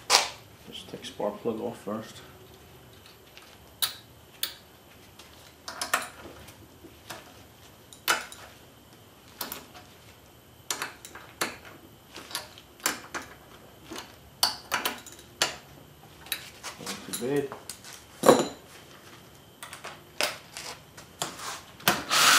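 Metal tools clink and knock against an engine part.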